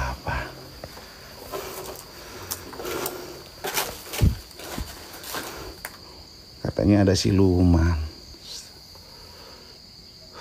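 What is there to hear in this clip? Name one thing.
Dry leaves and twigs rustle and crackle underfoot.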